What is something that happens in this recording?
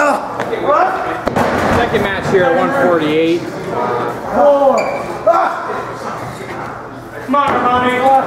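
Men shout and yell excitedly close by.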